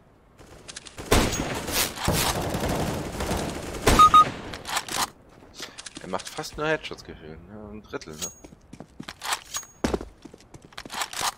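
Rifle shots crack sharply in a video game.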